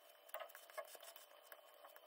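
A metal blade scrapes softly across a thin metal sheet.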